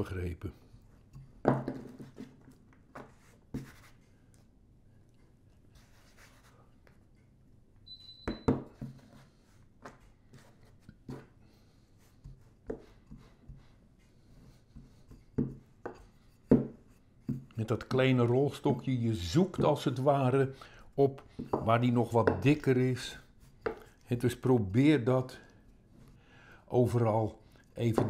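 A wooden rolling pin knocks on a table.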